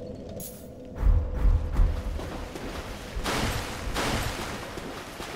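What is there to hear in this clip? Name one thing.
Splashing footsteps run through shallow water.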